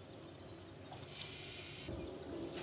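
A fishing reel whirs briefly.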